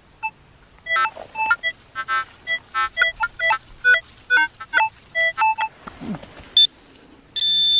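A metal detector gives rapid electronic beeps.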